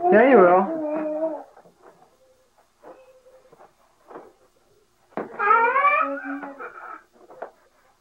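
A baby squeals and babbles close by.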